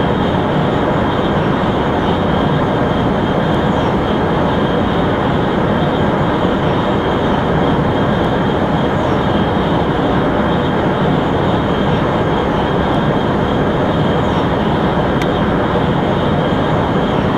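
A high-speed train roars steadily along the rails.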